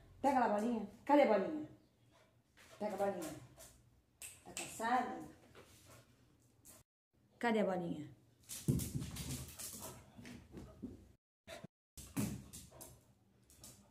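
A dog barks excitedly.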